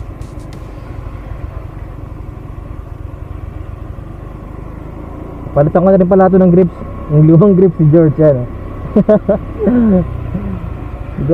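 A motor scooter engine hums steadily.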